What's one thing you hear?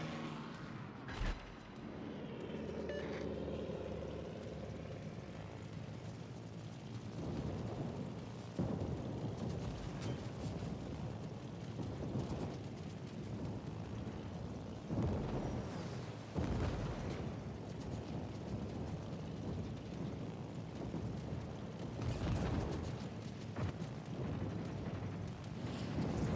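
Aircraft engines drone steadily.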